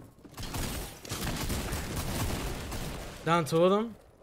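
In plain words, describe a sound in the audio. Gunshots fire rapidly at close range.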